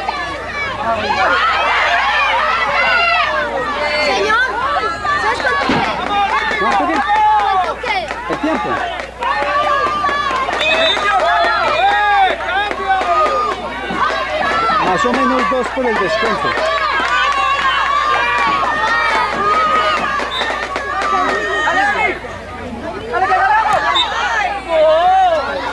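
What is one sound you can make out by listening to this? Children shout and call out on an outdoor field.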